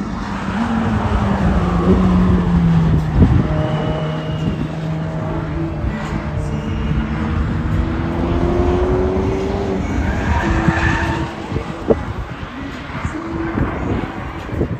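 A sports car engine roars past and fades into the distance.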